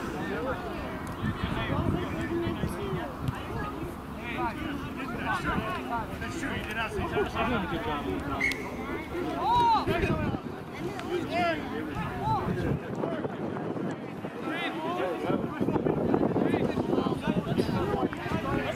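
Several men shout and call out to each other outdoors.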